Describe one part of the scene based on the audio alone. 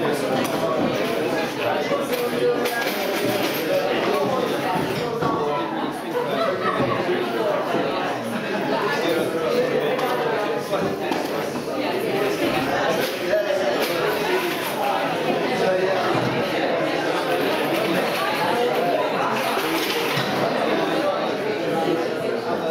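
A crowd of men and women chatter and mingle in an echoing hall.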